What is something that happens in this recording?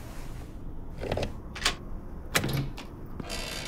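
A door handle rattles and clicks.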